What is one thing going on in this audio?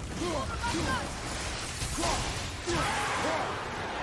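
Rocks shatter and scatter debris.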